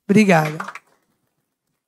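A woman speaks loudly into a microphone.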